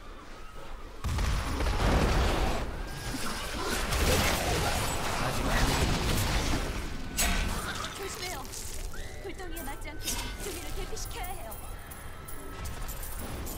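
Spell blasts and magic crackle in a game battle.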